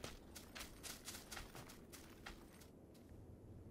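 Footsteps crunch quickly over dry grass and snow.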